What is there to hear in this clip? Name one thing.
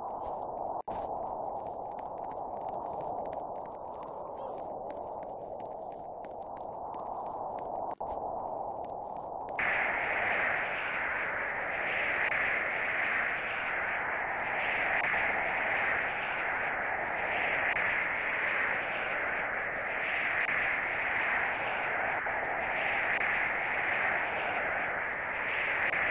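Strong wind roars and howls in a sandstorm.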